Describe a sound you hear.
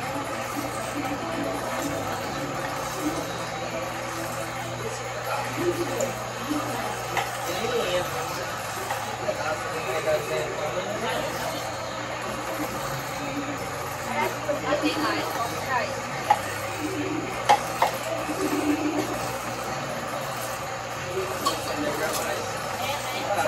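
Metal clinks against a cooking pot.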